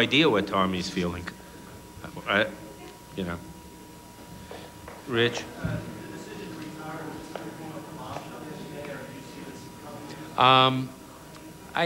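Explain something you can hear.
An elderly man answers calmly into a microphone.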